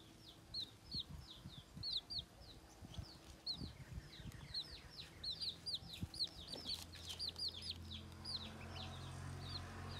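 Baby chicks peep rapidly and shrilly close by.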